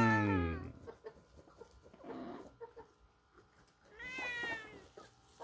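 A goat bleats loudly nearby.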